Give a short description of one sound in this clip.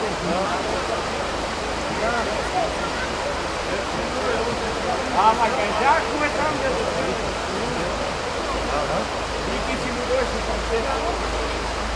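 Several men shout and call out to each other outdoors.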